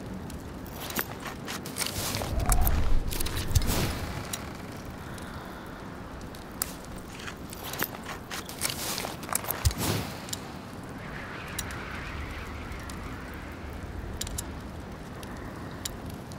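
Menu clicks tick sharply now and then.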